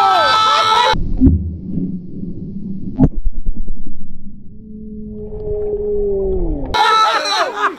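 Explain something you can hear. Bubbles gurgle underwater, heard muffled.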